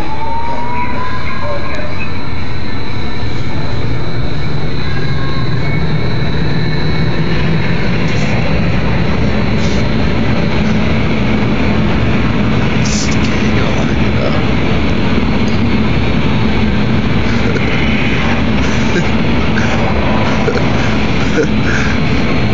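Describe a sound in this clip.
A young man shouts over the roaring wind.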